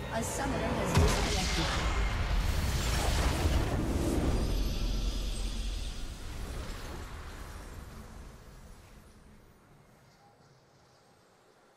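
A triumphant game fanfare swells and then slowly fades away.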